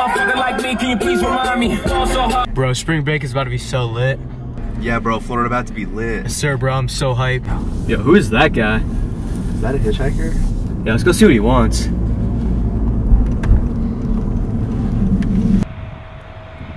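A car engine hums low inside a moving car.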